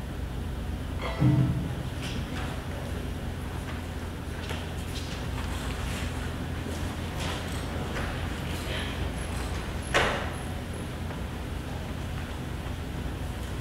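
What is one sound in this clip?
An audience murmurs softly in a large echoing hall.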